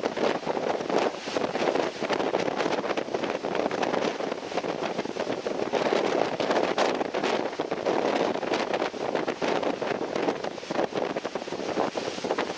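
Water splashes and rushes along the hull of a moving boat.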